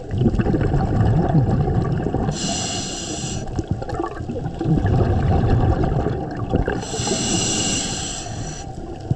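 Water rumbles and swirls in a low, muffled hum underwater.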